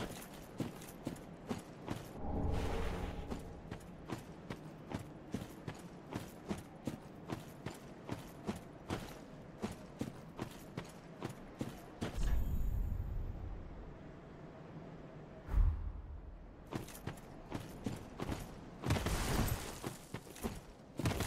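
Armoured footsteps crunch steadily over rough ground.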